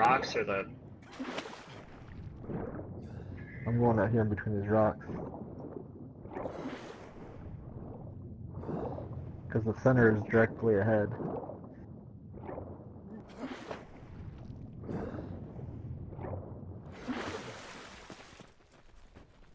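A swimmer strokes through water underwater.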